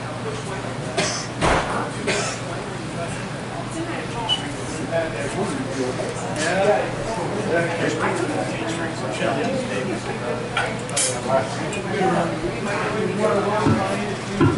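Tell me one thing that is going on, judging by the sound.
An electric guitar plays a rock tune through an amplifier.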